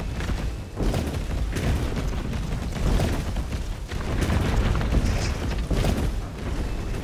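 Gunshots ring out in sharp, loud bursts.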